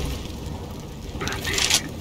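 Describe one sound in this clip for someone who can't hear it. Keypad buttons beep as a device is armed.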